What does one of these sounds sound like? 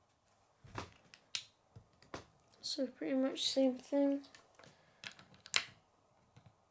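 Small plastic bricks click and snap together.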